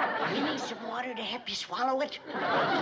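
An elderly woman speaks with surprise.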